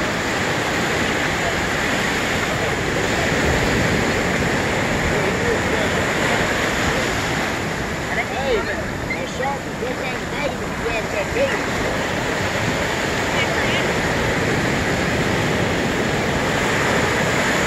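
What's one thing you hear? Ocean surf breaks and washes onto a beach.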